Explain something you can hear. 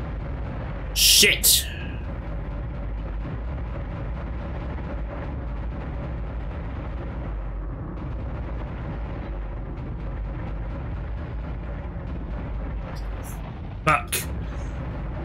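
Heavy turret guns fire in short bursts.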